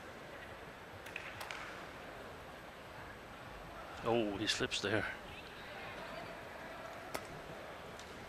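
A racket smacks a shuttlecock with sharp cracks, heard inside a large echoing hall.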